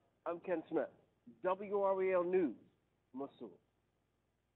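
A man speaks calmly and clearly.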